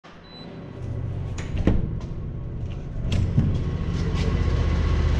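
A low rumble echoes in a large hollow space.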